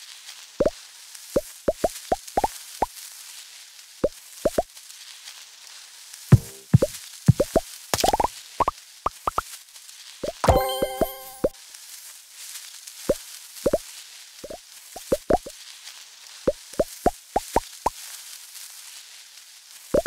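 Short rising game blips pop again and again as pellets are eaten.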